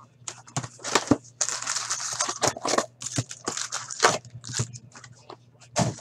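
A cardboard box lid flaps open with soft knocks.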